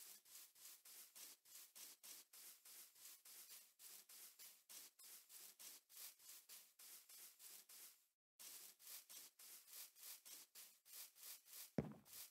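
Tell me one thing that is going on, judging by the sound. Footsteps crunch quickly and steadily on grass.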